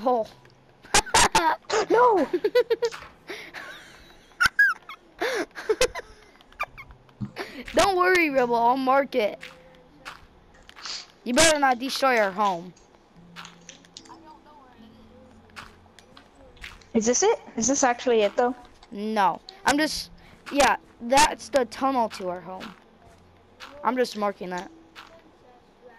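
Dirt blocks crunch softly as they are dug and placed.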